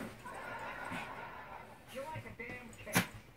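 Small dogs growl and snarl playfully close by.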